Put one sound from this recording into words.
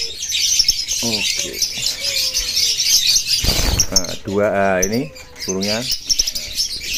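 A parrot lets out loud, warbling squawks.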